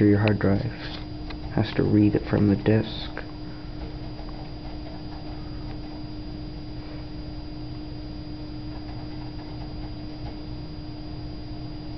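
A computer hums steadily nearby.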